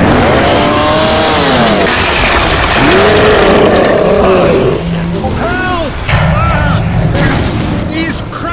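A huge monster roars and growls.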